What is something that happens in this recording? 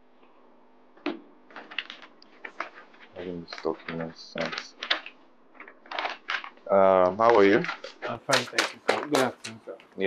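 A second man speaks with animation, close by.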